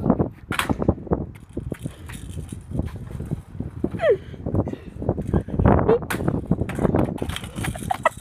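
Scooter wheels roll and rattle on tarmac.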